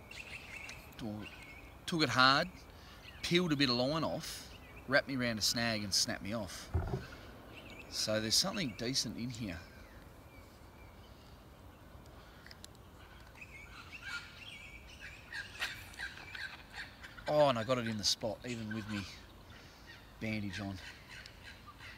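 A middle-aged man talks calmly close by, outdoors.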